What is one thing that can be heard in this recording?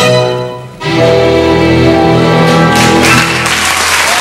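An orchestra plays a final loud chord.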